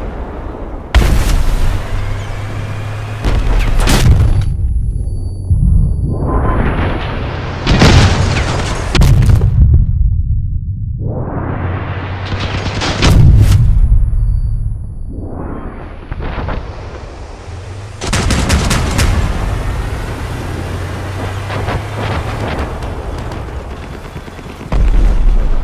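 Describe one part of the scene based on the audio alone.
Explosions boom and roll away.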